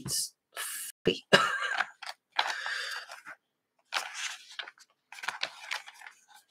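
Paper pages rustle and flap as they are handled.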